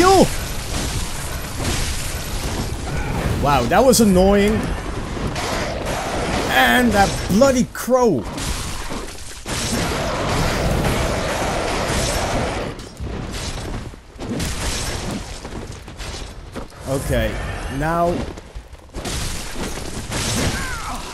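Blades slash and strike in a fight.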